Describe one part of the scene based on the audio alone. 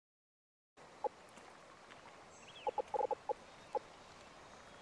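Soft clicks sound as menu options are selected.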